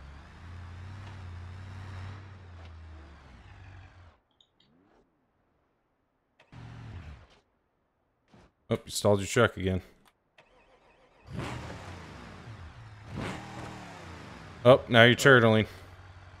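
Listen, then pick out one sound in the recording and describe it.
A truck engine rumbles and revs as the truck crawls over rocks.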